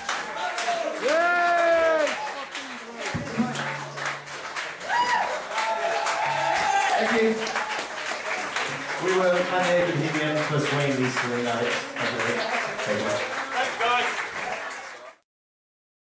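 A band plays loudly with guitars and an upright bass.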